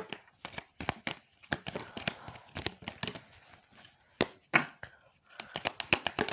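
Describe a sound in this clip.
Playing cards riffle and snap as a deck is shuffled.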